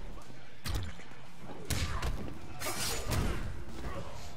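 Fighters' blows land with heavy thuds and whooshes.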